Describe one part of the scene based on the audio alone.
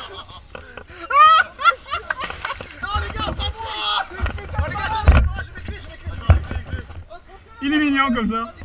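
A young man laughs and shouts loudly.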